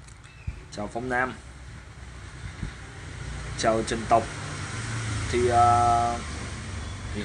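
A man speaks calmly and close to a phone microphone.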